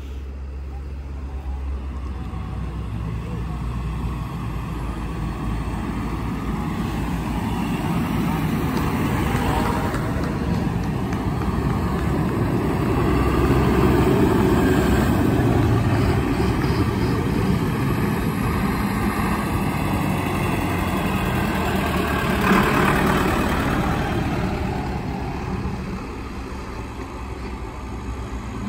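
Tractor engines rumble loudly as tractors drive past close by.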